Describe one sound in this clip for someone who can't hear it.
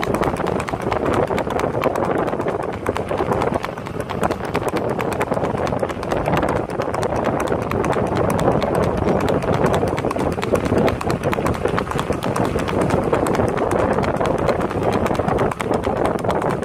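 A horse gallops with quick hoofbeats on a dirt road.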